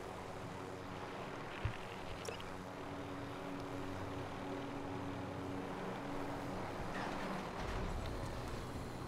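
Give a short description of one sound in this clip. A helicopter's rotor thumps and its engine hums steadily.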